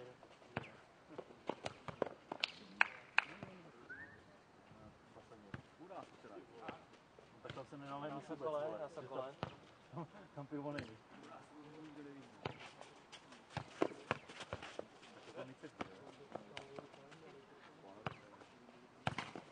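A ball is kicked and bounces on a clay court with dull thuds.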